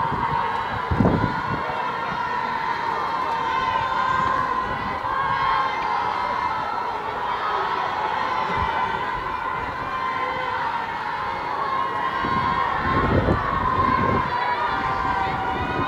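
Fireworks bang and crackle outdoors.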